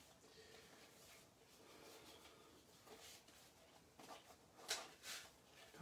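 Sheets of paper and card rustle and tap as they are handled.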